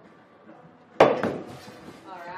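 An axe thuds into a wooden target.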